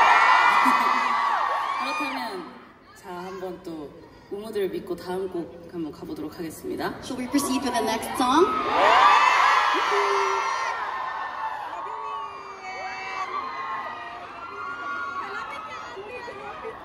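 A crowd cheers and screams loudly in a large hall.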